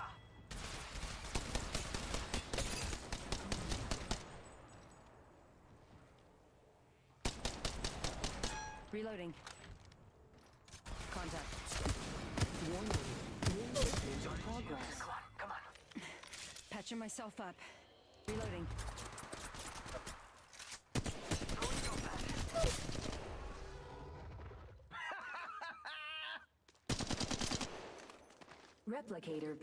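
Rapid gunfire bursts out in quick volleys.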